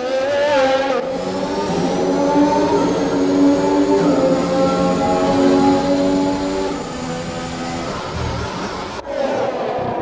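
A racing car engine echoes loudly inside a tunnel.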